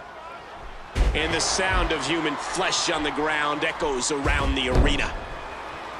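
A body slams down hard onto a wrestling ring mat.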